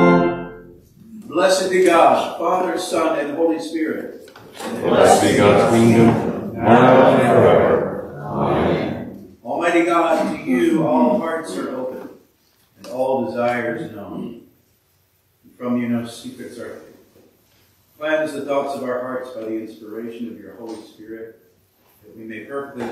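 A man speaks slowly and clearly through a microphone in an echoing hall.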